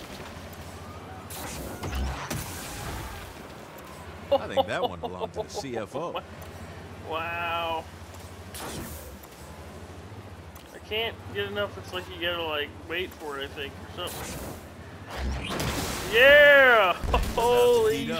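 A car crashes with a heavy thud.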